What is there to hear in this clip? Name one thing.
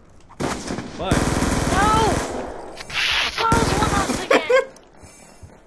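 Gunfire bursts out in short loud volleys.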